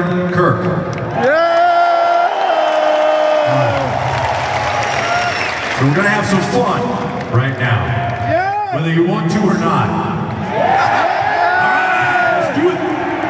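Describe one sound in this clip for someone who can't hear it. A rock band plays loudly through a big sound system in a large echoing arena.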